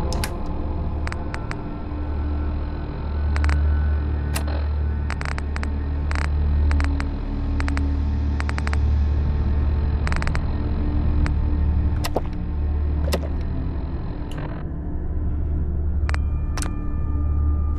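Short menu clicks tick again and again.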